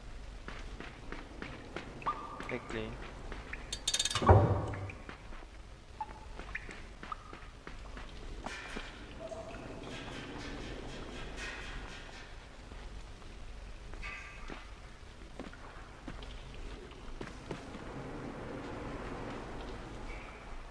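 A young man talks quietly into a microphone.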